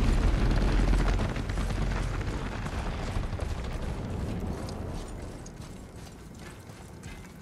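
Heavy footsteps thud on a stone floor.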